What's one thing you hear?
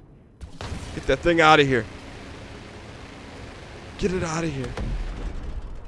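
Laser cannons fire in rapid bursts.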